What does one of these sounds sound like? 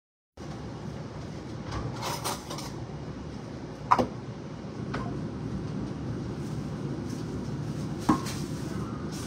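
Water runs steadily from a tap into a sink.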